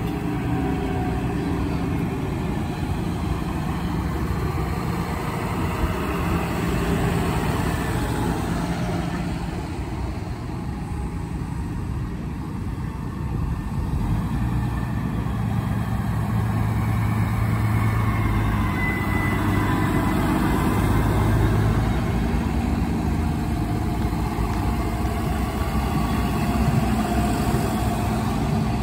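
Large tyres roll over a paved road.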